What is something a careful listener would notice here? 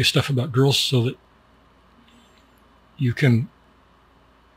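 A middle-aged man speaks calmly and close into a microphone, in short bursts.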